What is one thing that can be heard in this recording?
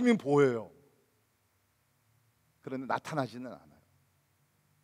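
An elderly man speaks with animation through a microphone in an echoing hall.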